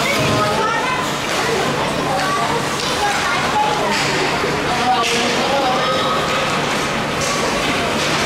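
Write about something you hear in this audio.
Children shout and call out to each other.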